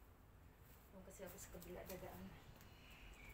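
A woman speaks briefly and calmly, close by.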